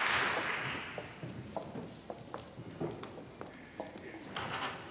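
Footsteps shuffle on a wooden stage.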